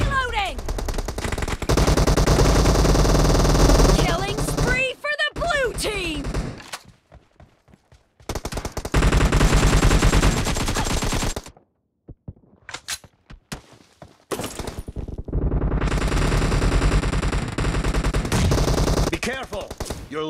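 Rapid rifle gunfire rattles in bursts.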